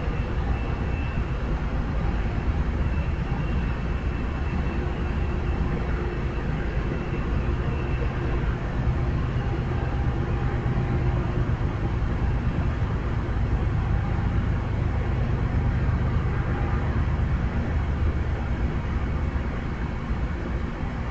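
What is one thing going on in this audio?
A standing train hums and rumbles steadily outdoors.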